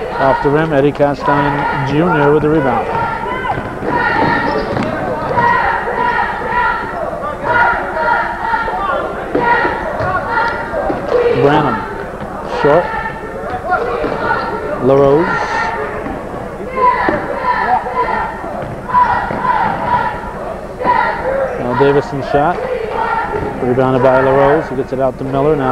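A crowd of spectators shouts and cheers loudly, echoing.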